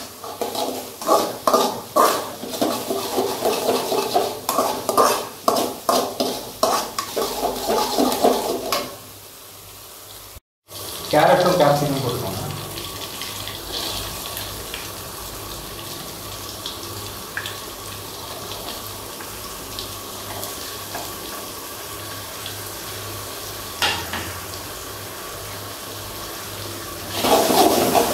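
A metal spoon scrapes and clatters against a metal pan as food is stirred.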